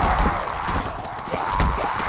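Flames roar and crackle close by.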